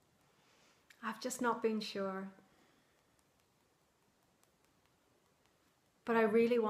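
A woman speaks calmly, close to the microphone.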